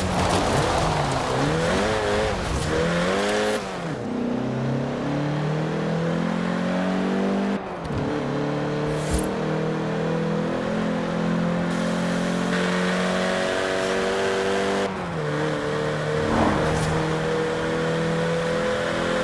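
A car engine revs hard and shifts up through the gears as it speeds up.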